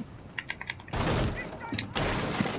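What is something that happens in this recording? A wooden barricade smashes and splinters.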